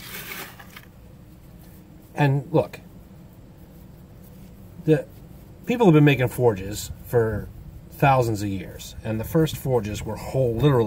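Gloved hands scrape and pat loose sand.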